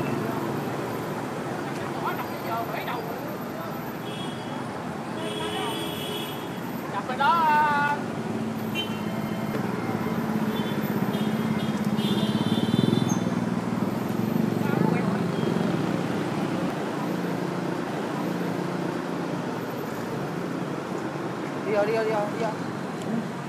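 A car engine idles with a low, steady rumble.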